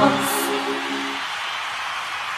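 A young girl sings into a microphone on a loudspeaker.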